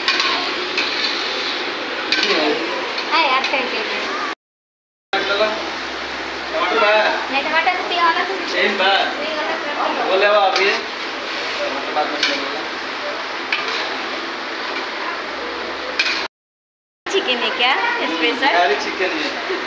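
A ladle scrapes and stirs in a metal pan.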